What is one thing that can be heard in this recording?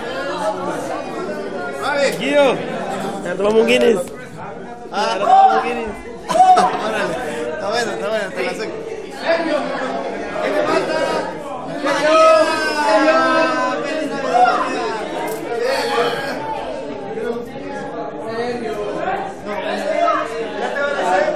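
A crowd of young men and women talk and laugh loudly close by, in an echoing room.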